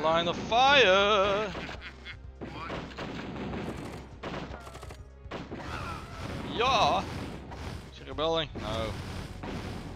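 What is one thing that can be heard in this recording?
Explosions boom in short bursts.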